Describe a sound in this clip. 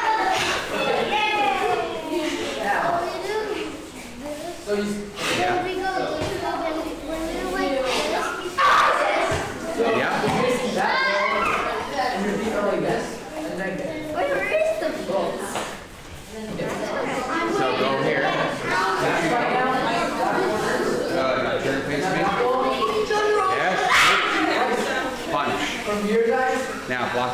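Children chatter and call out to each other in an echoing room.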